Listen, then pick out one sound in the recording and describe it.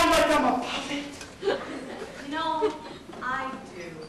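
A wooden chair clatters onto a floor.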